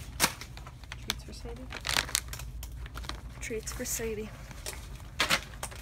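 Plastic packaging crinkles and rustles close by.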